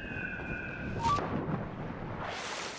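A body splashes into water after a dive.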